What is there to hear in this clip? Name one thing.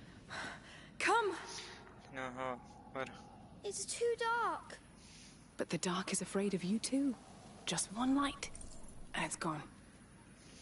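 A young woman speaks softly and urgently.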